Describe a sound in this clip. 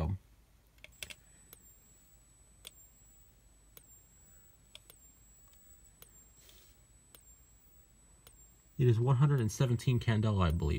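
A fire alarm strobe ticks steadily.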